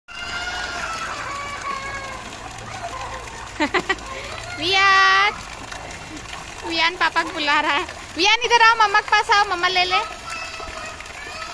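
Water splashes and pours steadily into a pool.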